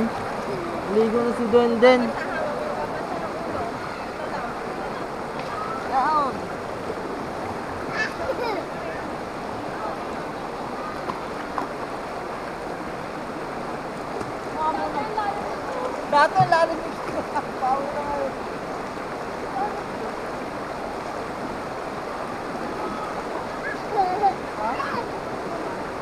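A young girl talks and calls out nearby, outdoors.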